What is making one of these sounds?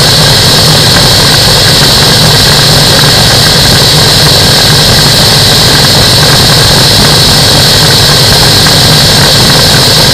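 A small aircraft engine drones loudly and steadily, close by.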